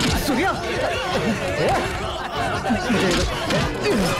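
Punches thud as men fight.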